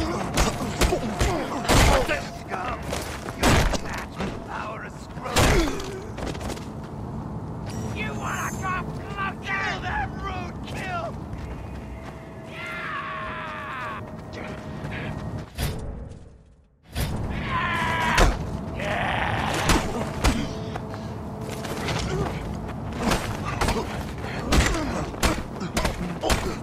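Punches land with heavy, dull thuds.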